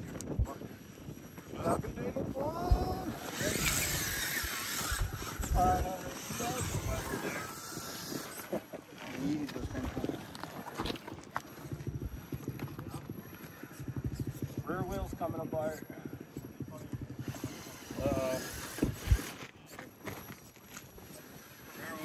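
Rubber tyres scrape and grind on rock.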